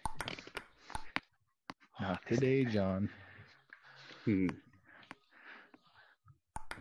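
A table tennis ball clicks against a paddle and the table.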